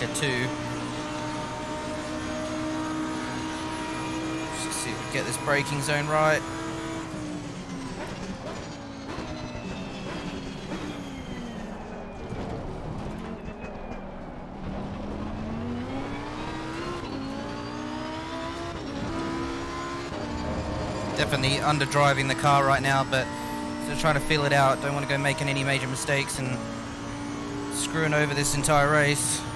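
A racing car engine roars, dropping and rising in pitch as it shifts gears.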